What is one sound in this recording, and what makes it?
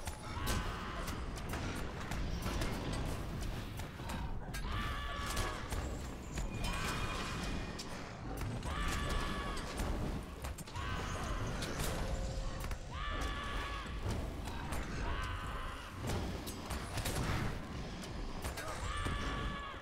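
Weapons clash and thud in a fierce fight.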